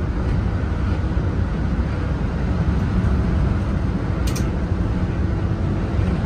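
A car engine hums steadily with road noise from inside the moving car.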